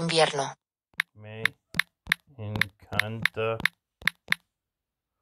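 A phone keyboard clicks with each tap as someone types.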